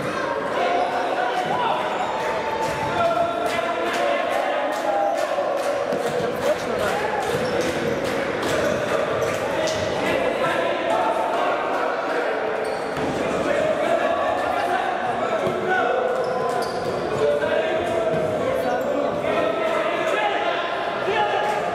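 Men shout to one another across an echoing indoor hall.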